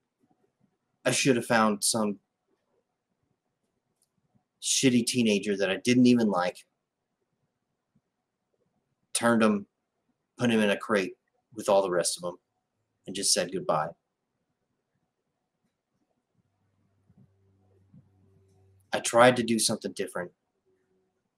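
A man speaks calmly in short bursts over an online call.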